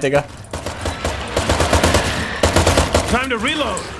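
A pistol fires several shots.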